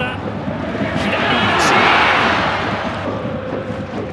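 A stadium crowd roars loudly as a shot flies toward goal.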